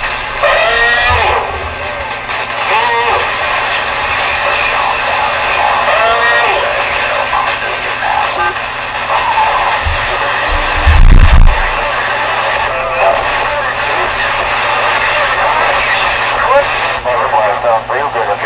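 A radio receiver hisses and crackles with static through a loudspeaker.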